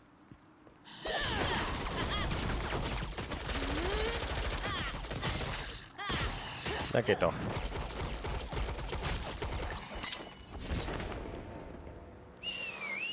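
Spells and blows crash and burst in a fight.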